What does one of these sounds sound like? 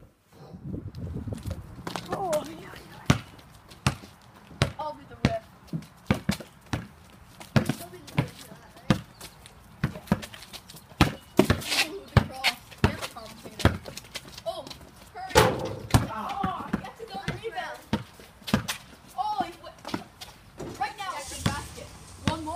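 A basketball bounces repeatedly on concrete outdoors.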